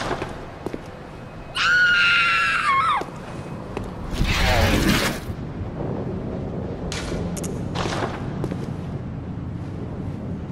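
Footsteps tread on wet stone.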